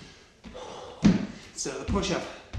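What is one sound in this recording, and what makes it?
Hands thump onto a wooden floor.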